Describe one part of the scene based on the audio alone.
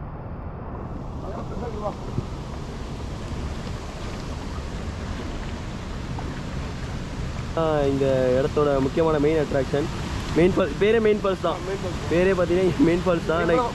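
A waterfall roars steadily in the distance.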